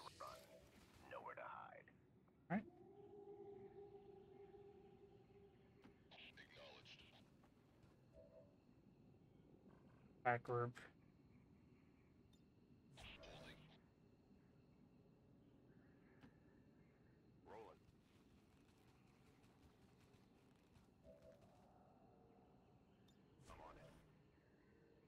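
Video game combat effects chime and whoosh in short bursts.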